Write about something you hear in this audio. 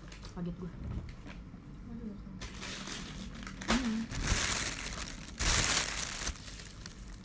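A young woman bites into soft bread and chews.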